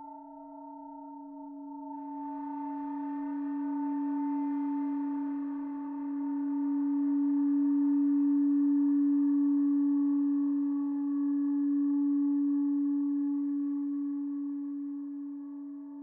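A synthesizer plays a steady droning tone that swells and grows richer.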